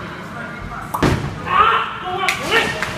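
A bowling ball thuds onto a wooden lane and rolls.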